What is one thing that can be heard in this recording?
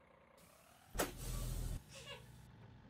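Bus doors hiss open with a burst of air.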